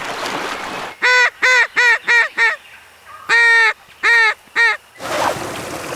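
A man blows a duck call in a series of quacking honks.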